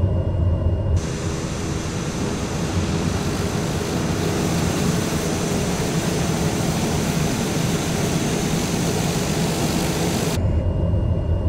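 A propeller plane's engine idles with a loud, steady roar and hiss, heard from outside.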